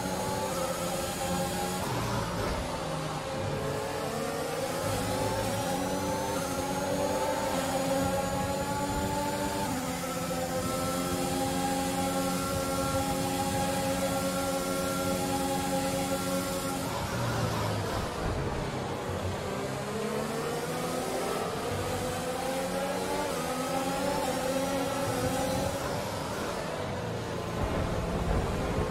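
A racing car engine screams at high revs, rising and falling as it shifts gears.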